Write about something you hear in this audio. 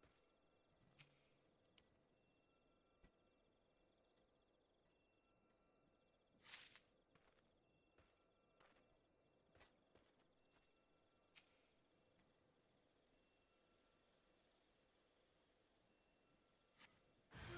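Short swishing bursts sound as fruit is picked from a tree.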